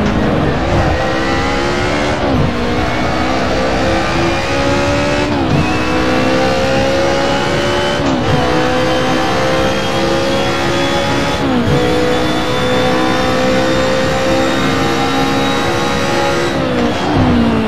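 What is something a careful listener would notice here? A racing car engine roars, revving up through the gears with sharp drops at each shift.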